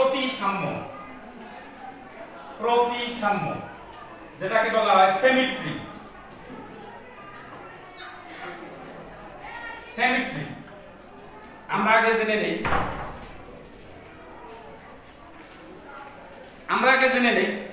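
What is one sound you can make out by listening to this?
A middle-aged man speaks calmly and clearly, lecturing close by.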